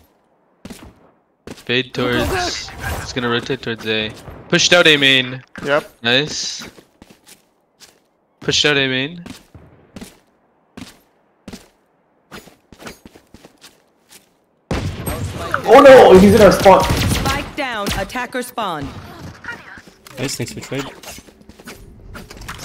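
Footsteps tap quickly on stone.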